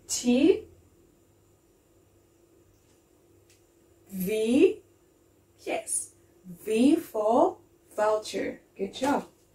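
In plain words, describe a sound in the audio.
A young woman speaks cheerfully and clearly, close by, with pauses.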